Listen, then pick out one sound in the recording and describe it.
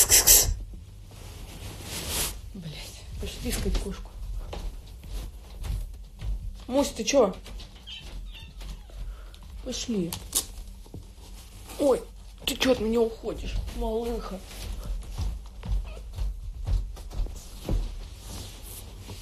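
Hair and fabric rustle against a phone microphone.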